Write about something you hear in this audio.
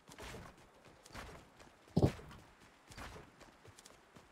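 Wooden planks thud into place one after another.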